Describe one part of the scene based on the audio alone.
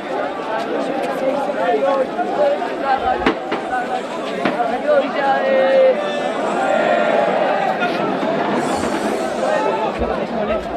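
A large crowd of men and women talks and shouts all at once.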